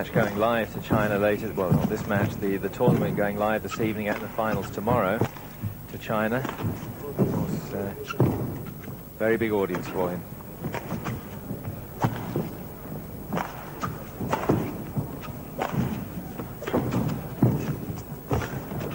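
A shuttlecock is struck back and forth with sharp pops of rackets.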